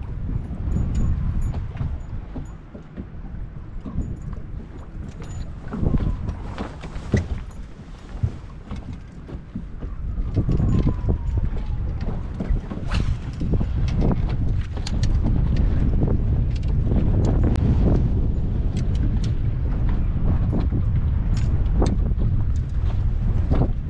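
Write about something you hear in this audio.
Small waves lap against a boat's hull.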